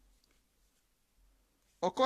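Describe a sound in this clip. Stacks of paper stickers rustle softly in hands.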